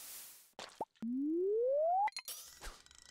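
A rising electronic tone swells steadily and then stops.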